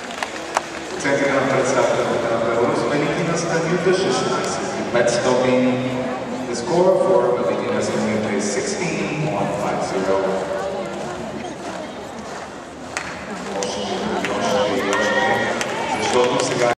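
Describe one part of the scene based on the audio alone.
Music plays over loudspeakers in a large echoing hall.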